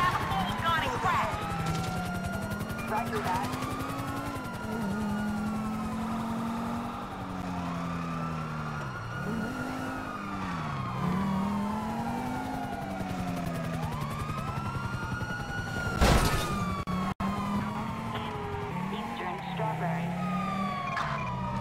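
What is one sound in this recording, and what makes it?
Car tyres screech while skidding around corners.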